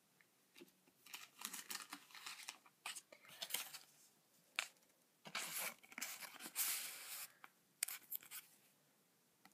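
Trading cards rustle and slide against a plastic sleeve in someone's hands.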